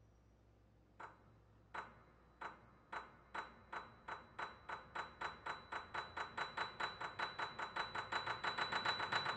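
A grand piano plays repeated notes that quicken and grow louder.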